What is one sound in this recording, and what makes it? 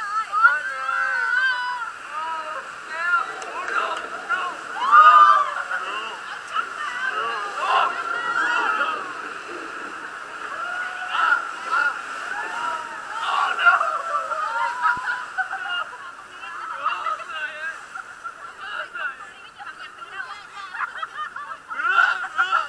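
Young women scream and laugh loudly close by.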